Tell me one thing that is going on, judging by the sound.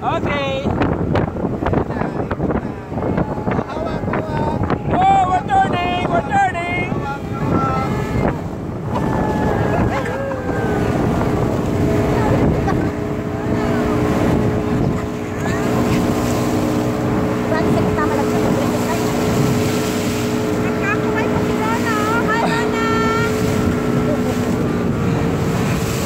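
Wind blusters loudly past the microphone.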